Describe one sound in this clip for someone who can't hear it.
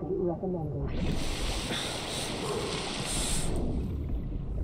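Water splashes and rushes as a swimmer breaks the surface.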